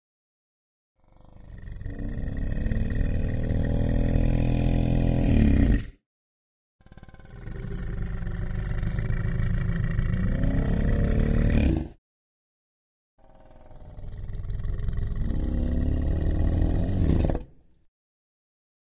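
A large creature gives long, deep, rumbling bellows, three times with pauses between.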